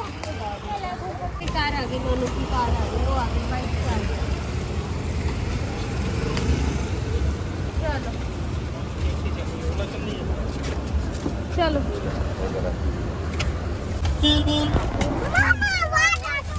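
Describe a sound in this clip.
A woman talks close by in short phrases.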